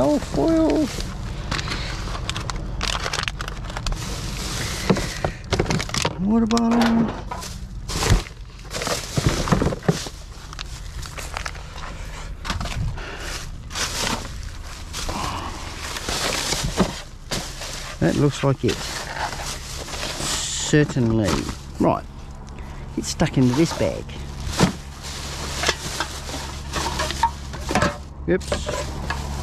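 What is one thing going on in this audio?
Plastic bags rustle and crinkle as gloved hands sort through rubbish.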